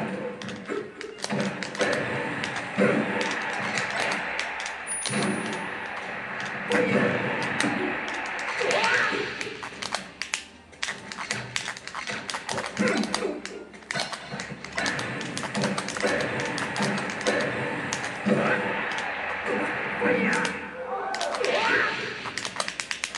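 Sharp electronic hits and blasts from a fighting game crack again and again.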